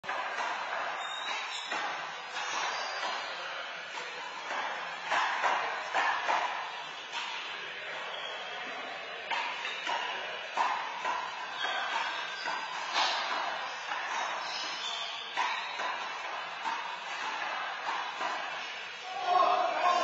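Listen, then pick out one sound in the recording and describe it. An open hand slaps a handball in an echoing indoor court.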